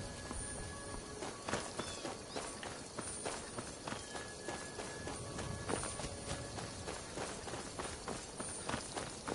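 Footsteps crunch over rough ground at a steady pace.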